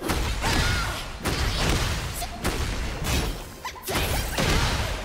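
Punches and kicks land with heavy thuds and whooshes in a fighting game.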